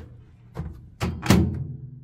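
A microwave door shuts with a thud and click.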